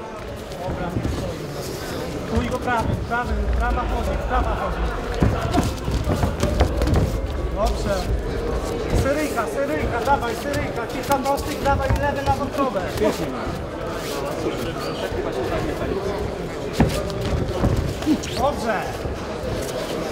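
A crowd murmurs and cheers in a large hall.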